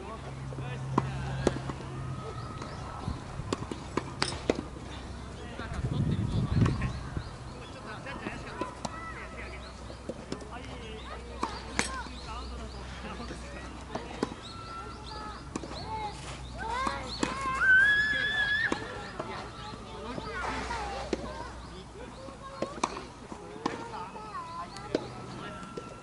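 Tennis balls are struck with rackets in sharp pops, outdoors.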